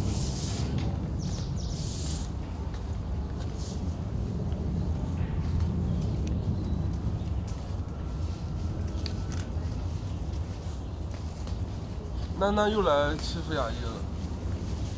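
Panda cubs rustle leafy branches as they climb a tree.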